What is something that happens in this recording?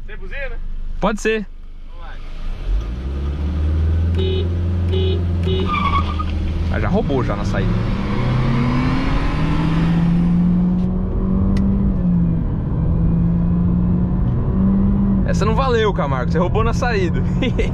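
Tyres and wind rush loudly around a fast-moving car.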